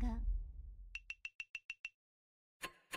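A quick run of light electronic ticks sounds as scores count up.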